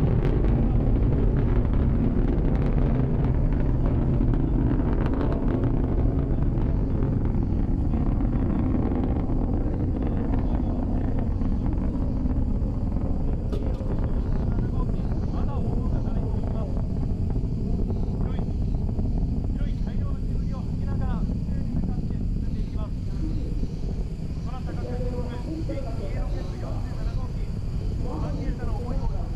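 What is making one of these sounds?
A rocket engine roars and rumbles deeply in the distance.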